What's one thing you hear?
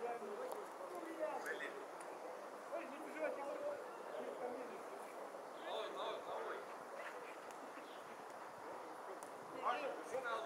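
Men shout and call to each other across an open field, some way off.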